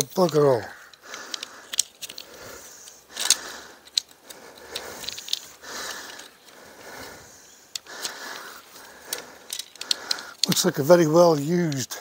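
Tent poles click and rattle as they are fitted together.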